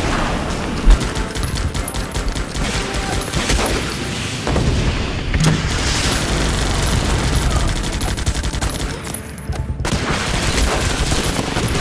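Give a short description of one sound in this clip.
Rapid gunfire rattles on and off.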